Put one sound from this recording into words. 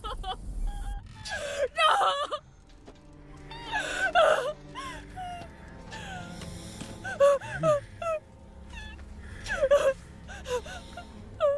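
A young woman screams and whimpers through a gag, close by.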